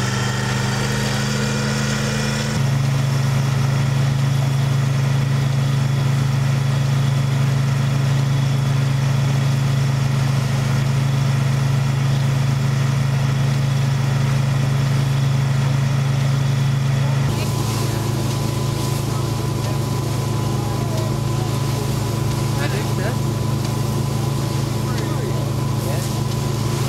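A threshing machine engine hums steadily.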